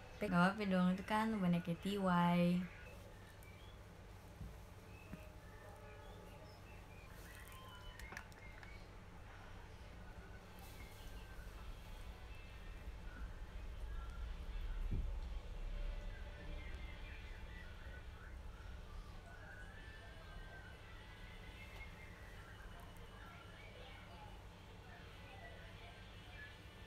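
A young woman talks quietly and calmly close by.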